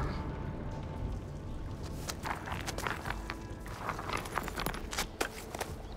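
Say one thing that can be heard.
Rocks and rubble scrape and clatter as a young woman digs through them.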